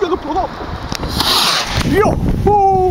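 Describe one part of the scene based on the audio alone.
A small rocket launches with a sharp rushing whoosh.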